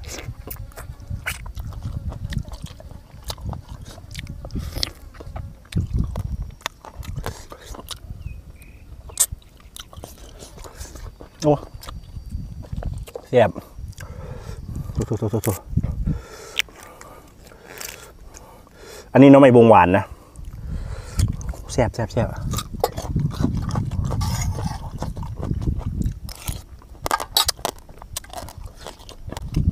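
A man chews and smacks his lips close by.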